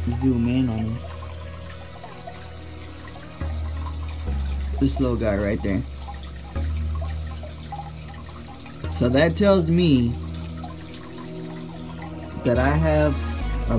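Air bubbles stream and fizz through water in a tank.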